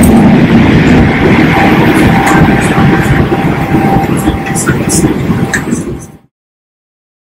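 A steady engine roar fills an aircraft cabin.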